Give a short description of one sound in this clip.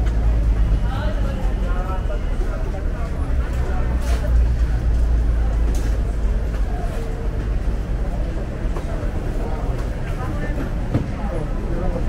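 Market chatter murmurs outdoors.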